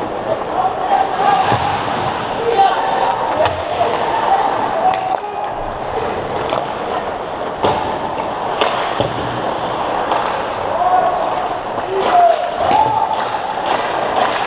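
Distant voices shout across a large echoing rink.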